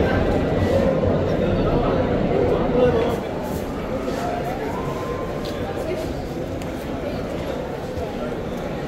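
A crowd of men murmurs and chatters nearby in an echoing hall.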